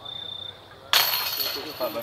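A disc golf disc strikes the chains of a basket with a jangling rattle.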